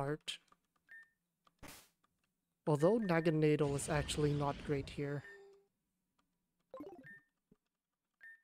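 Short electronic menu blips chime now and then.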